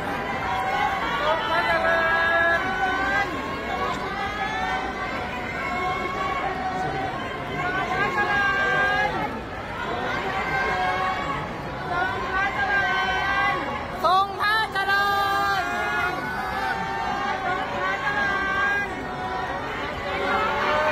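A large crowd chatters and calls out in a big echoing hall.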